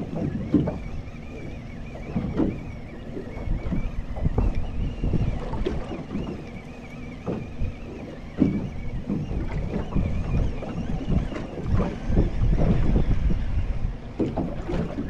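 Waves slap against the side of a small boat.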